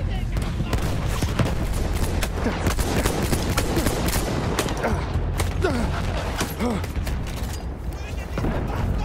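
Gunfire crackles in rapid bursts nearby.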